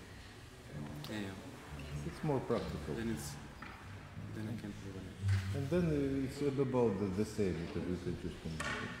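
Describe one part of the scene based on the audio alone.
An older man speaks calmly and expressively nearby.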